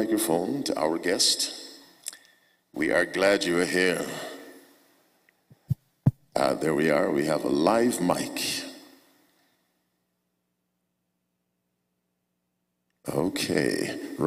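A man speaks through a microphone in phrases, with pauses, in a reverberant hall.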